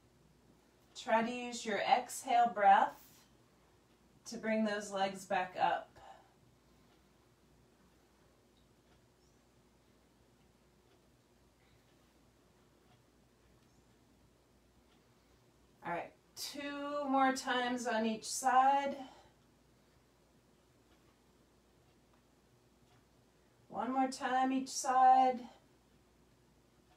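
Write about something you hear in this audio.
A woman speaks in short bursts close by, between quiet pauses.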